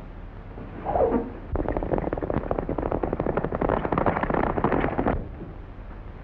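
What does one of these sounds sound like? Horses gallop past on a dirt track.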